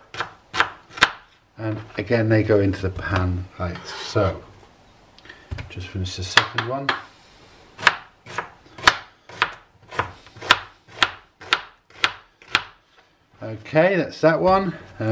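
A knife chops through an onion against a plastic board with sharp, regular taps.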